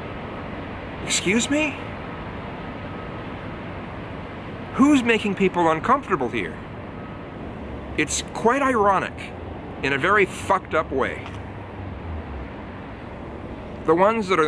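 A middle-aged man speaks calmly and close by, in short phrases with pauses.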